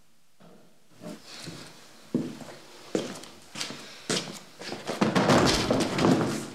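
A man rattles and bangs on a wooden door.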